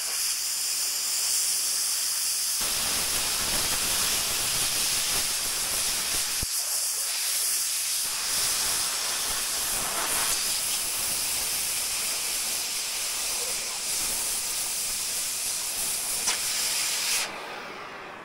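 A cutting torch roars steadily with a loud hiss.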